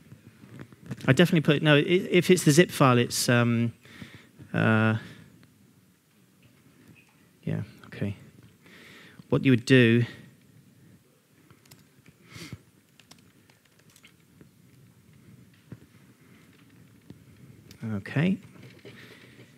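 A man speaks through a microphone in a large room, in short bursts with pauses.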